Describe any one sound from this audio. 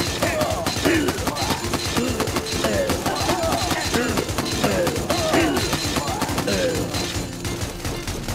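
Small guns fire in quick bursts.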